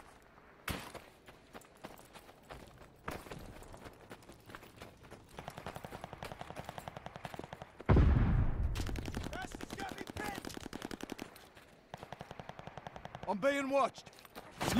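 Quick footsteps crunch through snow.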